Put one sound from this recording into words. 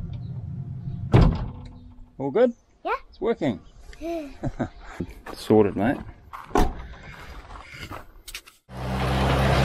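A young child talks close by.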